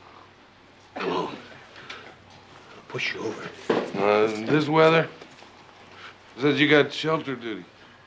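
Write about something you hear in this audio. An elderly man answers in a gruff, raspy voice close by.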